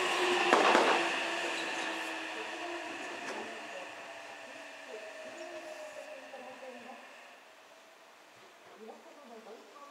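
A train rolls away into the distance, its rumble and squealing slowly fading.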